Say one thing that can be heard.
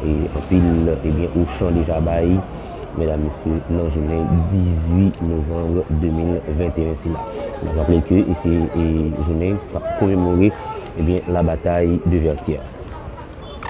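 A man speaks loudly and forcefully through a loudspeaker outdoors.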